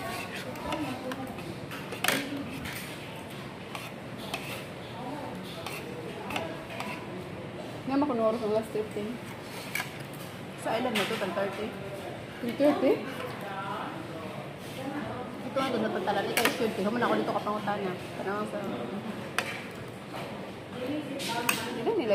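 A fork scrapes and clinks on a plate.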